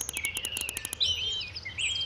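Birds chirp and twitter overhead.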